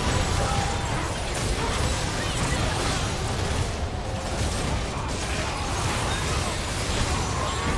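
Magic effects crackle and blast over and over in a fast fight.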